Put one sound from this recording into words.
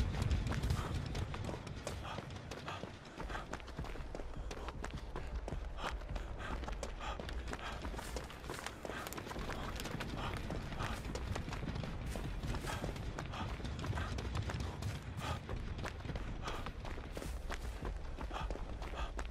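Footsteps run quickly through grass and over hard ground.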